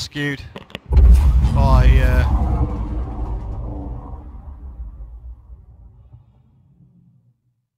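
A spacecraft engine roars and swells as the craft rushes forward, then fades away.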